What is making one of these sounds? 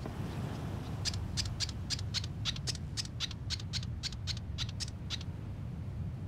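A small creature's feet patter quickly on a hard floor.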